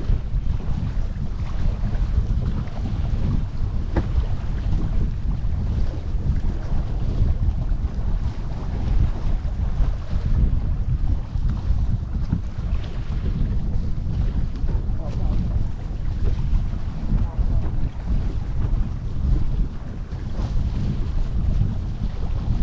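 Wind buffets the microphone steadily outdoors.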